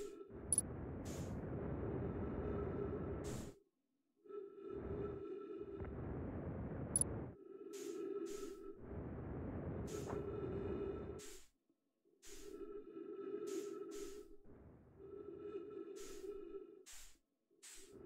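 A spacesuit thruster roars in long bursts with short pauses between them.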